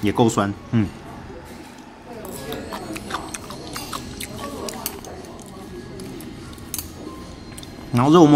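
Chopsticks click lightly against a plate.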